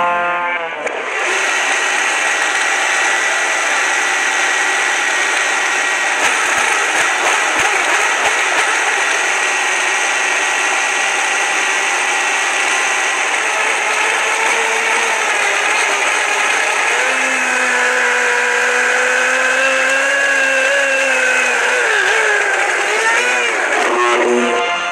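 A blender motor roars loudly and steadily while grinding hard chunks.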